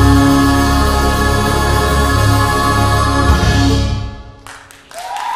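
A band plays loud music with drums and horns, then stops.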